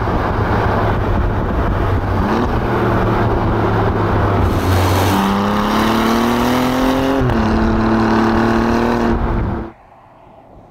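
A car engine roars and revs up as the car speeds along.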